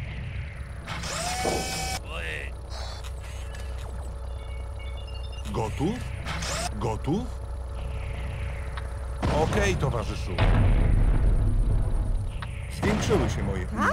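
Game weapons fire in short bursts.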